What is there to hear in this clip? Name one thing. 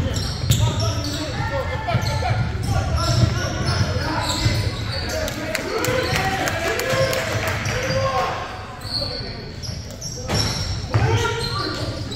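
Young men shout to each other in an echoing gym.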